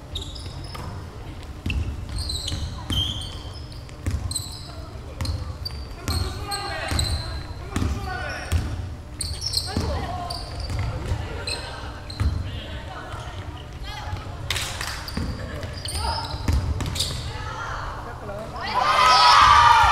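A basketball bounces with dull thumps on the court.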